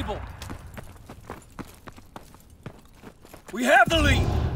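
Footsteps crunch quickly over rubble and snow.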